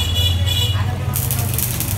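Fingers pick at food on a paper plate.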